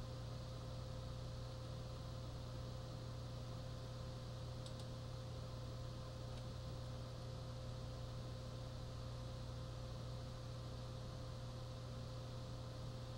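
A television hums steadily.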